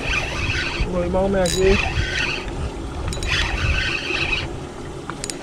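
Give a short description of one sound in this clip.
A fishing reel whirs in bursts as its handle is cranked.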